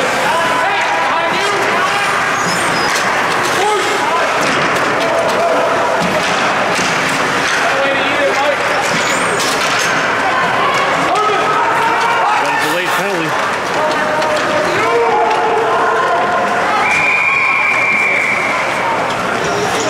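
A crowd of spectators chatters and shouts in an echoing rink.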